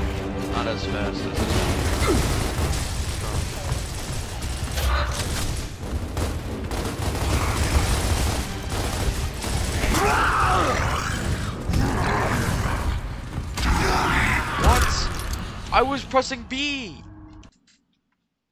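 Rapid gunfire rattles and booms.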